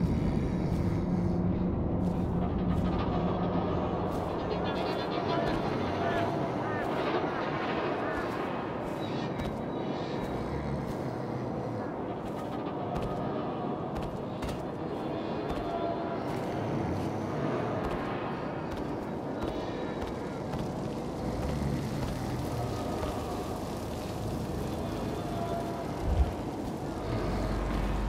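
Footsteps scuff softly over stone and metal.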